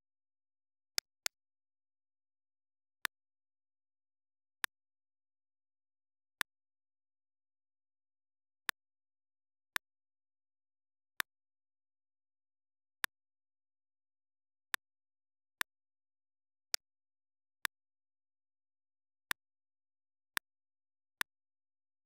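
Short menu clicks sound one at a time, every second or two.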